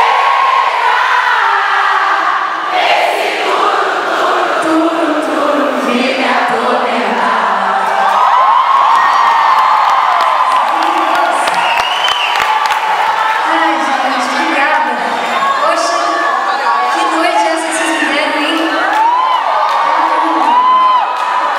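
A young woman talks animatedly into a microphone over loud arena speakers.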